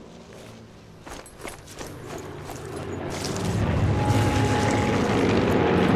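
Footsteps crunch on grass as a person runs.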